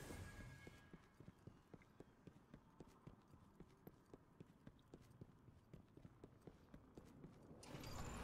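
Footsteps crunch steadily on hard ground.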